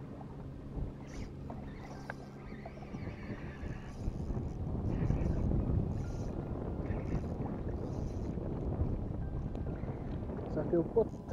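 A fishing reel whirs and clicks as it is cranked.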